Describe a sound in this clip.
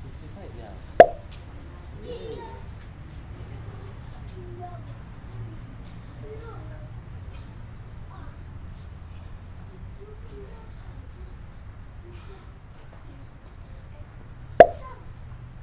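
A man's hands clap together sharply.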